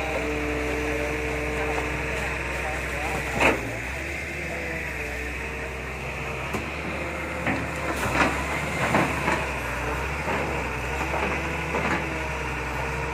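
An excavator's engine rumbles under load.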